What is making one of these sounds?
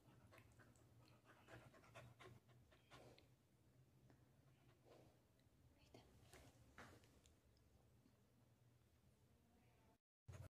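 A dog pants close by.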